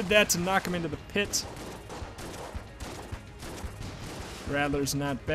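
Video game guns fire in rapid bursts of small pops.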